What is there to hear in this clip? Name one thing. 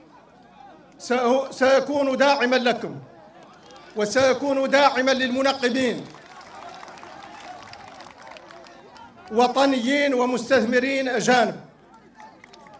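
A man speaks forcefully through loudspeakers.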